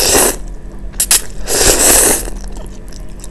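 A young woman slurps noodles loudly up close.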